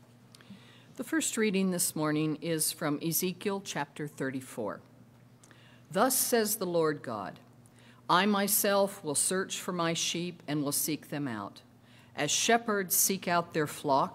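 An elderly woman reads out calmly through a microphone.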